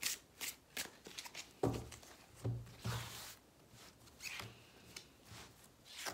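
Cards are shuffled and slapped down onto a table.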